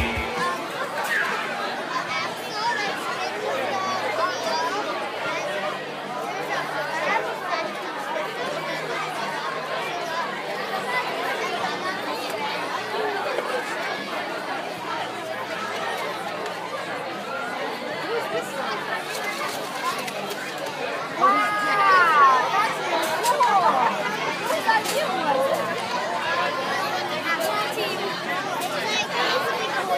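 Many children chatter around, blending into a busy crowd murmur.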